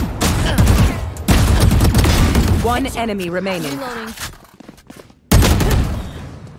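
Rapid gunfire bursts out loudly.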